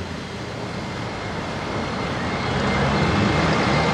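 A car engine roars as it pushes through deep mud.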